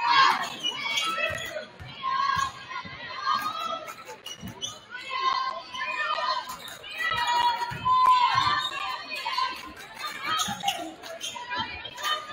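A basketball bounces on a hardwood floor with dull thuds.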